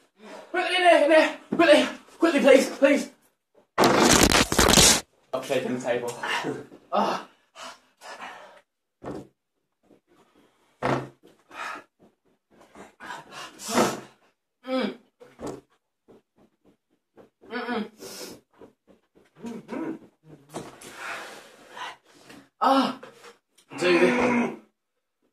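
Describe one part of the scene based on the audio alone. Young men talk and laugh with animation close by.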